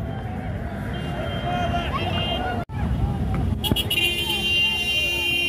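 Car horns honk repeatedly.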